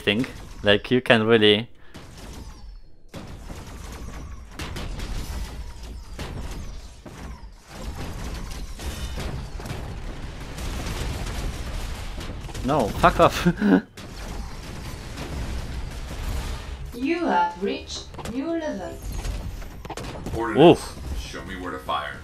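A young man talks with animation.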